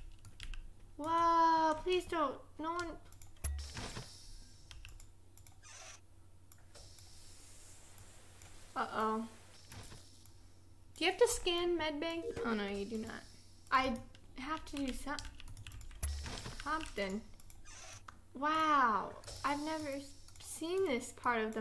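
Young women talk with animation, close to a microphone.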